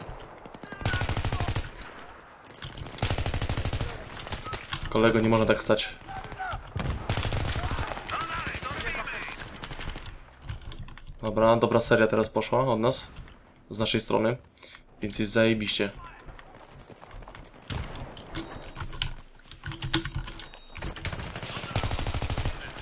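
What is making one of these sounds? An assault rifle fires in rapid bursts.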